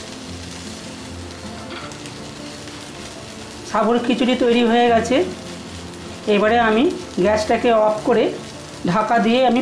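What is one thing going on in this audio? A spatula scrapes and stirs food in a frying pan.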